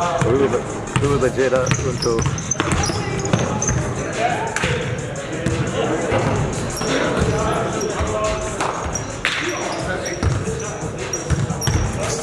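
A basketball bounces and thuds on the floor.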